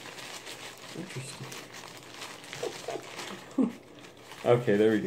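Tissue paper rustles and crinkles as it is unwrapped.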